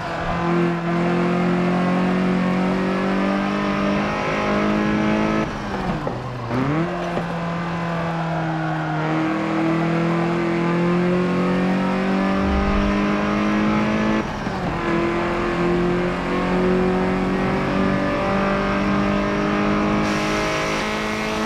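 A car engine roars and revs hard, rising in pitch through each gear and dropping briefly at each gear change.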